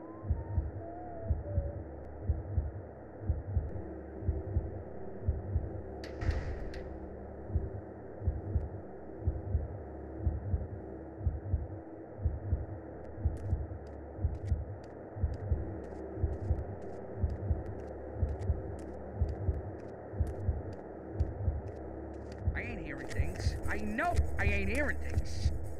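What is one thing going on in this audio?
Heavy footsteps thud steadily on pavement.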